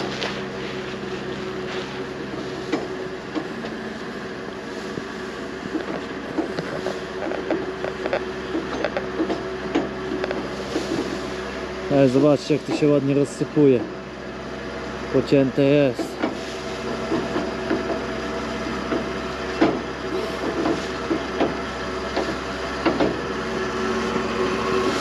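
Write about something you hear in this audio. Chopped grass pours and rustles from a trailer onto a pile.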